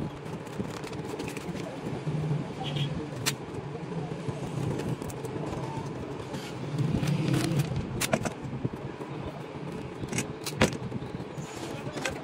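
Plastic film crinkles and rustles as hands peel and smooth it.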